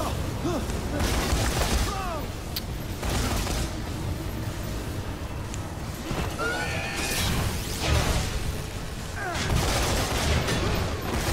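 A heavy weapon fires in loud bursts.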